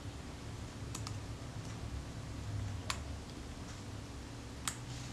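Small metal tools click and tap against a metal part.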